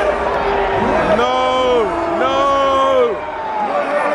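A crowd chants in unison.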